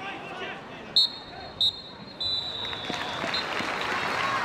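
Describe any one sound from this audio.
A referee's whistle blows several short, shrill blasts.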